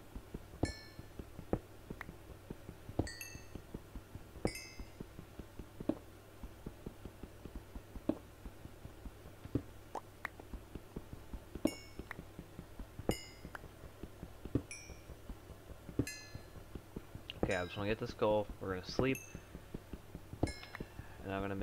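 Small blocks break with soft popping sounds.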